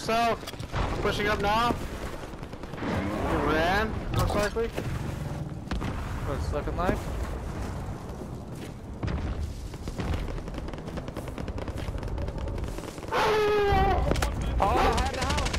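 Footsteps rustle through grass as a player runs.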